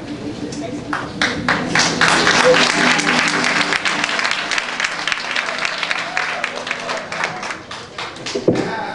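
A congregation claps along in steady rhythm in a large echoing hall.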